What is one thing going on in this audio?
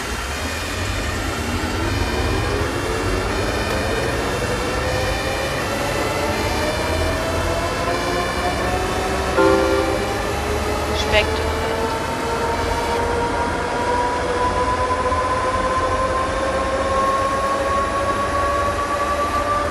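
A bus engine hums and whines, rising in pitch as the bus speeds up.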